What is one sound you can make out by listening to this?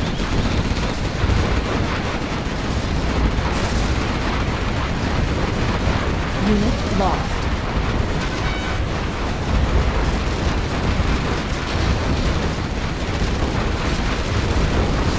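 Explosions boom and rumble again and again.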